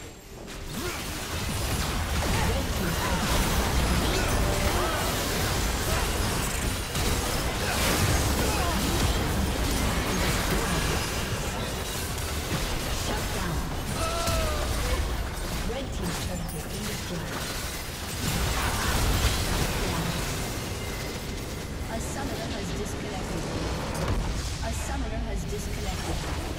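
Magic blasts and weapon hits crackle and burst in a busy fight.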